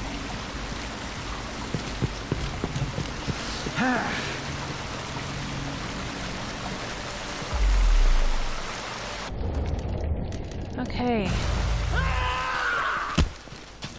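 A fountain splashes steadily nearby.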